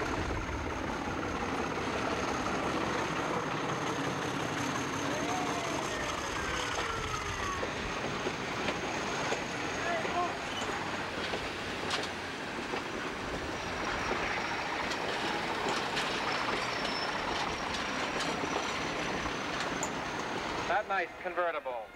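Passenger car wheels roll and click along the rails close by.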